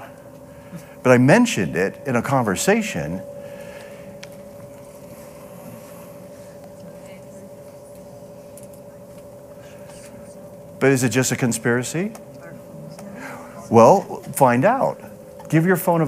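A middle-aged man speaks with animation through a microphone, with pauses.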